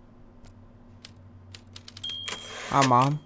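Typewriter keys clack in quick taps.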